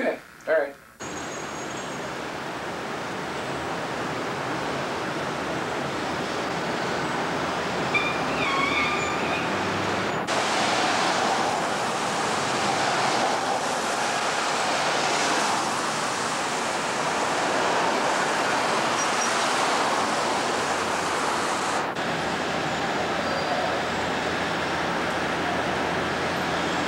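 City traffic rumbles and hisses steadily outdoors.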